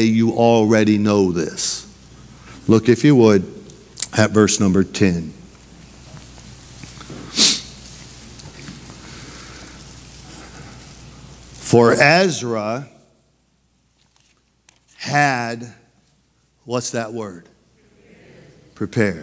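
A middle-aged man speaks calmly into a microphone, pausing between phrases.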